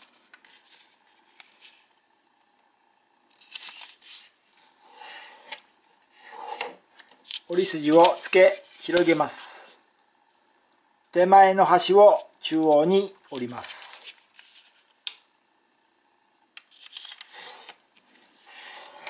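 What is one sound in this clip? Paper rustles and crinkles as it is folded and creased.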